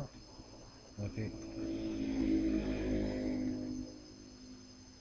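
Flux sizzles and hisses briefly under a hot soldering iron.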